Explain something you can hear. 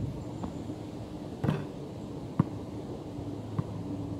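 A basketball clangs off a metal hoop.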